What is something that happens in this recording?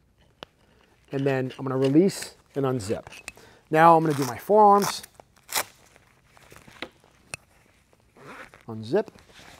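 Straps on a suit rustle and click as a man fastens them.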